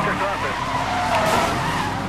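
Tyres screech as a car drifts through a corner.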